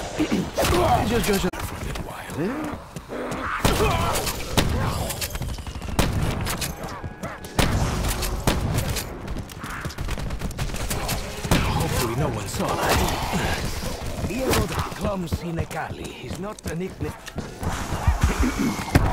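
Shotgun blasts boom again and again.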